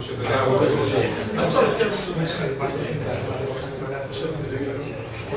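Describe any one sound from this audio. A man speaks calmly to an audience through a microphone.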